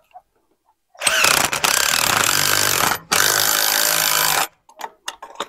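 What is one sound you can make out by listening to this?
A power drill whirs steadily.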